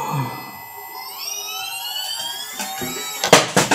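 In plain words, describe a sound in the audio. A small electric motor whines, rising in pitch.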